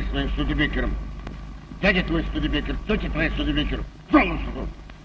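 An elderly man talks.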